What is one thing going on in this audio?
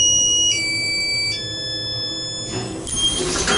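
An elevator chime plays a few steady electronic tones.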